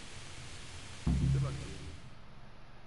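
A young man answers briefly in a low voice.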